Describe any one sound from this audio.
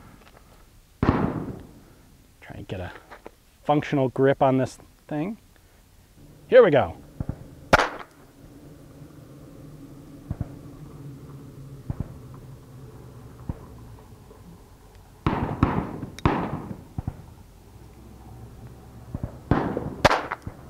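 A small revolver fires sharp shots that echo outdoors.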